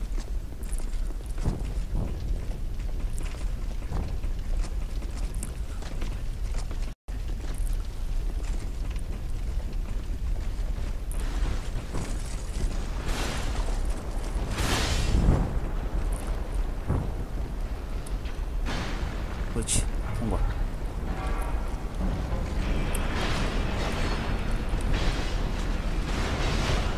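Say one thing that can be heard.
Bare feet patter on stone while running.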